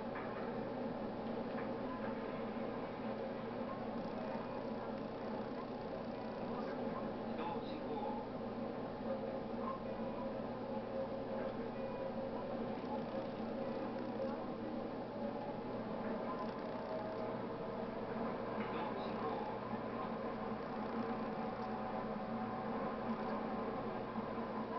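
An electric train rumbles along the rails through a tunnel.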